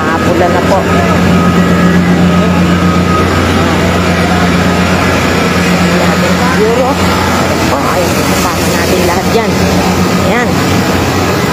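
A fire engine's motor rumbles steadily nearby.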